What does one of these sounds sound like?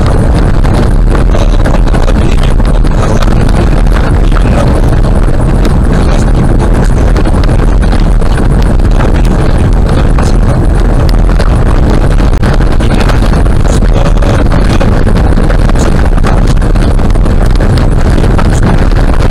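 A car drives steadily with a loud, low rumble.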